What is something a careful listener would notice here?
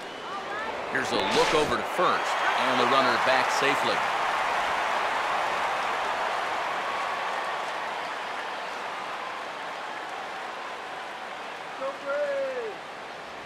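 A large crowd cheers and murmurs steadily, slowly fading.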